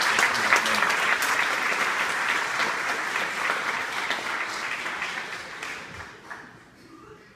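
An audience applauds loudly and then fades away.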